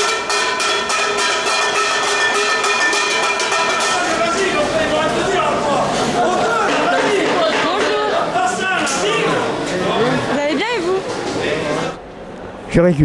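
A group of men sing together loudly nearby.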